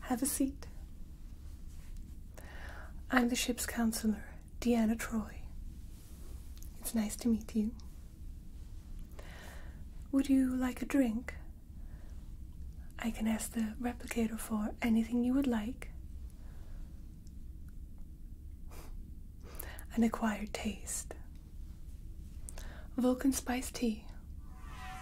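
A young woman speaks calmly and warmly, close to a microphone, with pauses.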